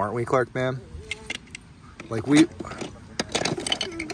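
Plastic toy blocks clatter and click against each other.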